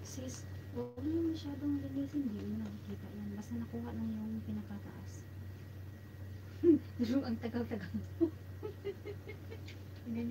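A young woman speaks close by in a calm voice.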